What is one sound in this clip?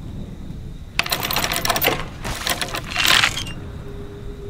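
A wooden bucket splashes as it is hauled up out of a well.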